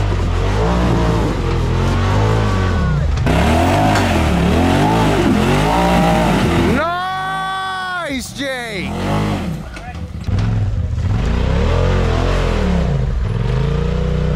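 An off-road vehicle's engine revs up and down loudly as it climbs over rocks.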